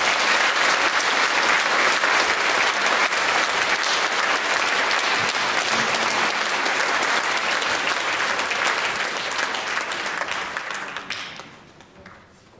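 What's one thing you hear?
An audience applauds loudly in a large hall, then the clapping dies away.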